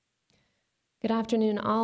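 A young woman speaks calmly into a microphone over loudspeakers.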